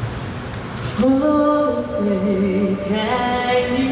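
A man speaks calmly over a loudspeaker from a live call.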